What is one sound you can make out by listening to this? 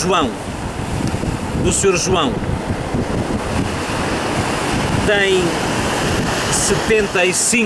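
Waves wash and break against rocks.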